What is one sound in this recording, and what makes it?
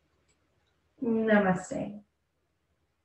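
A woman speaks softly and calmly close by.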